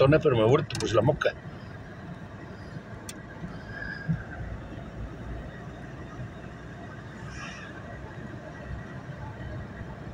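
Windscreen wipers swish across the glass.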